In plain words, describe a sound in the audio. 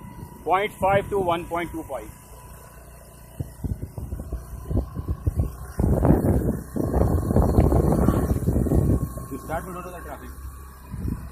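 An electric bicycle with a hub motor rolls along a paved road.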